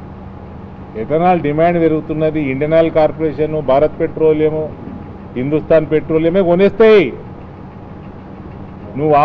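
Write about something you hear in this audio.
A man speaks with animation into a nearby microphone.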